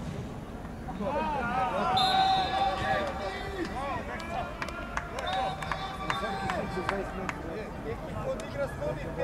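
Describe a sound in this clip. Men shout and cheer loudly in celebration.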